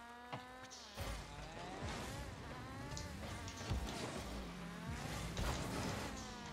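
A game car's boost roars in short bursts.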